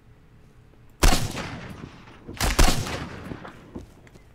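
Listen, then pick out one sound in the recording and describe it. Rifle shots ring out loudly and echo outdoors.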